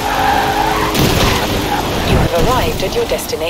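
A car crashes hard into bushes with a loud thud.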